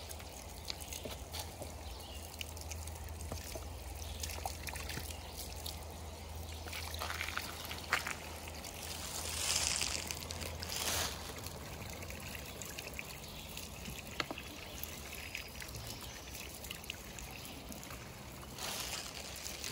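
Water splashes and trickles from a hand pump.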